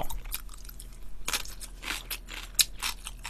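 A young man slurps noodles close to a microphone.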